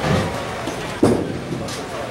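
A bowling ball thuds onto a wooden lane in a large echoing hall.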